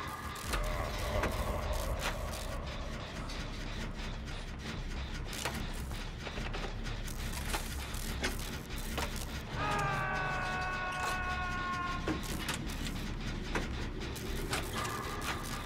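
A generator clanks and rattles as it is repaired.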